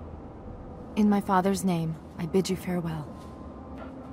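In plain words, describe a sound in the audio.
A young woman speaks calmly and firmly.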